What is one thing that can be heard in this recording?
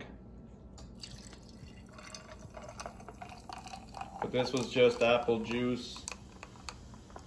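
A fizzy drink pours and splashes over ice into a glass.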